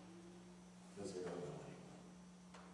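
A man speaks briefly into a microphone in a large echoing hall.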